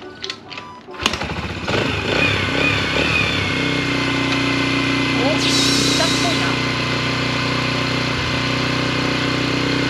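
A motorcycle engine sputters to life, revs and settles into a steady idle.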